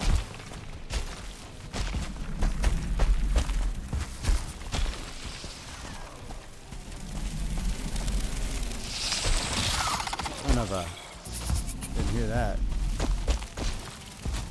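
Water swishes as a swimmer moves through it.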